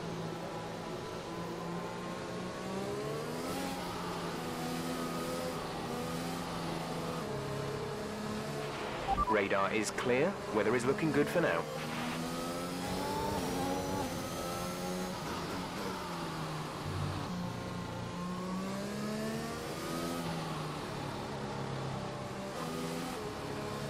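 A racing car engine hums steadily, revving up and down.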